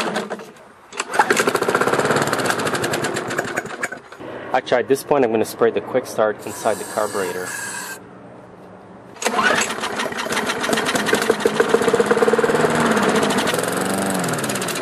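A lawn mower engine sputters and roars loudly.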